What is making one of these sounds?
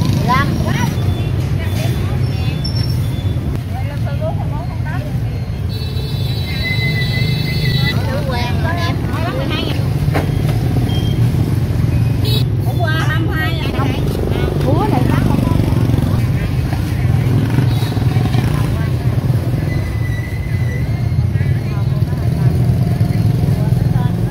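Motorbike engines rumble by in the background.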